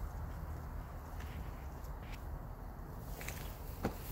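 Soil and roots crackle softly as a plant is pulled from a plastic cup.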